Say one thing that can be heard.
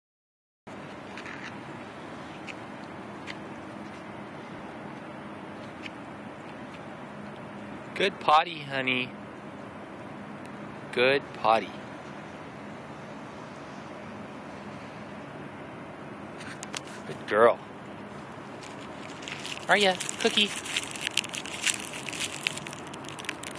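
A small dog's paws scratch and patter on gritty snow.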